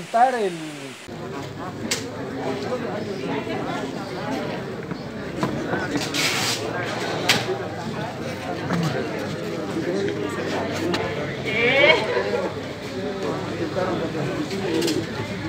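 A crowd of people murmur and talk at once.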